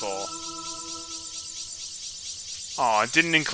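A bright game chime rings out and slowly fades.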